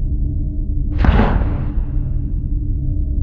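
A soft whoosh rises and fades.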